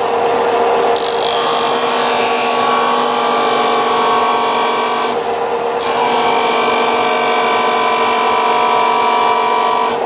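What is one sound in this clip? A piece of wood grinds against a spinning sanding disc.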